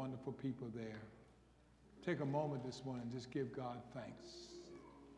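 An elderly man speaks into a microphone over loudspeakers in a large echoing hall.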